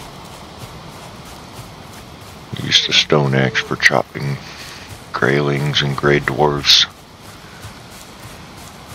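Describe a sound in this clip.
Footsteps swish softly through grass.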